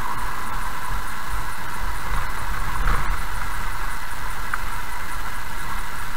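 Tyres rumble over a rough road surface.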